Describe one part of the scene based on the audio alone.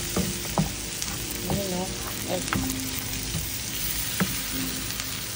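A wooden spatula scrapes and knocks against a frying pan.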